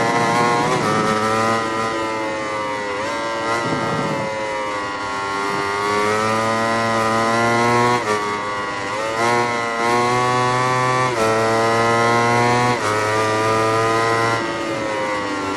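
A motorcycle gearbox shifts with brief breaks in the engine's roar.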